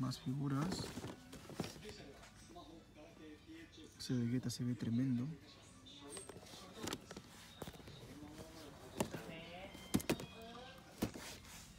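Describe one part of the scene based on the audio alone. A cardboard box scrapes and taps as a hand handles it.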